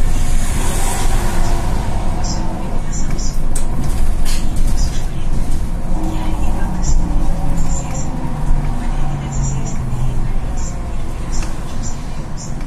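The bus rattles and vibrates over the road.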